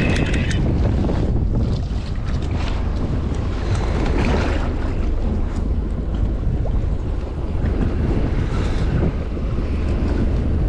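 Waves slosh against a small boat's hull.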